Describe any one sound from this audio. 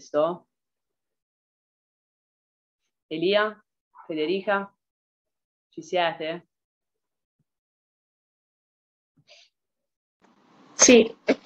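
A woman speaks calmly in short bursts with long pauses, heard through an online call.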